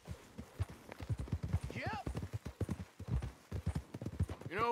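A second horse's hooves thud close by, growing louder.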